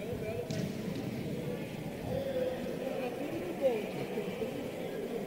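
A crowd of spectators murmurs and chatters in the background.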